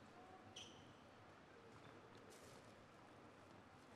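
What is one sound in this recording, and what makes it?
A table tennis ball bounces off a paddle with light taps.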